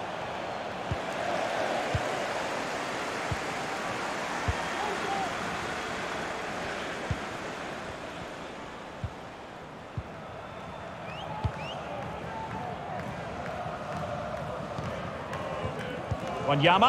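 A football is kicked with dull thuds, again and again.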